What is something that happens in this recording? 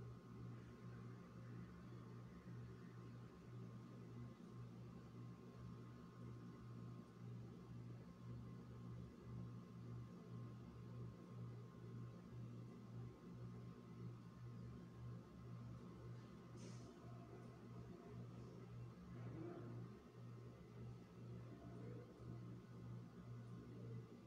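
A fluorescent light hums steadily.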